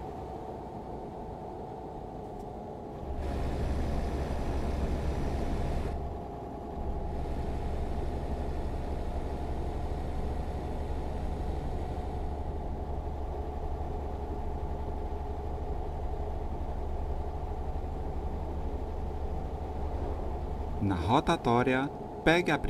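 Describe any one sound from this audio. A truck engine hums steadily while driving.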